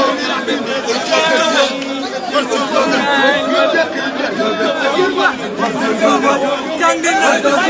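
A crowd of men and women sings and chants loudly outdoors.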